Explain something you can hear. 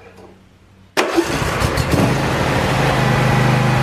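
A small engine starts and runs loudly.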